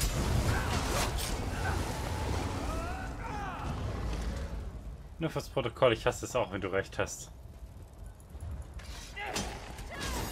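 Magic blasts crackle and burst in a fight.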